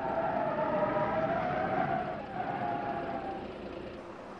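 Car tyres screech while skidding.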